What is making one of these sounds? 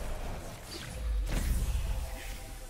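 A deep explosion booms and rumbles.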